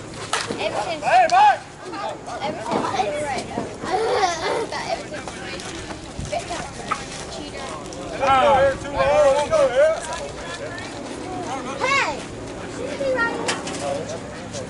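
Men shout and cheer nearby outdoors.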